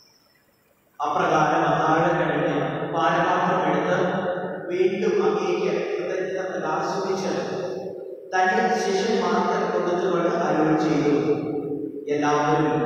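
A man speaks steadily into a microphone in a large echoing hall.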